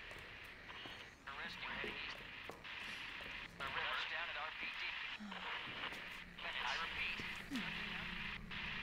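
A man speaks urgently over a crackling radio.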